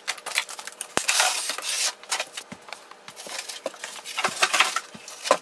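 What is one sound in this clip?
Cardboard packing thumps and knocks as it is handled.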